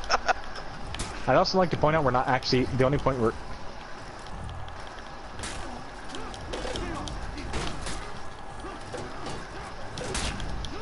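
Swords clash and clang in a melee fight.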